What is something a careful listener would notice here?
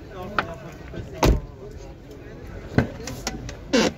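A car door thumps shut.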